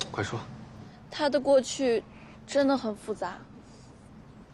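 A young woman speaks softly and sadly.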